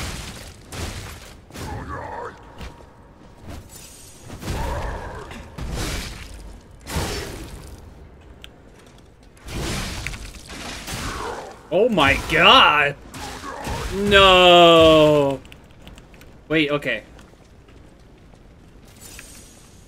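Heavy blows and metal clashes thump and ring.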